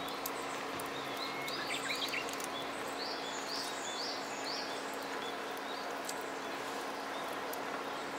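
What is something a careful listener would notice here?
Hands rustle lettuce leaves while stacking them onto a burger.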